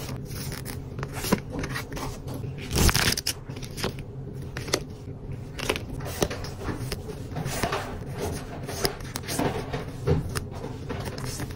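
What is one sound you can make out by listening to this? Paper cards shuffle and flick between fingers.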